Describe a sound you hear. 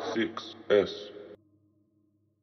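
A young man raps loudly into a microphone.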